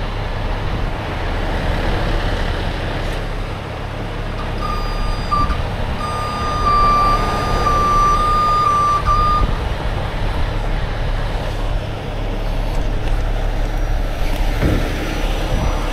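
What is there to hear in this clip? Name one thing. A truck engine rumbles steadily outdoors.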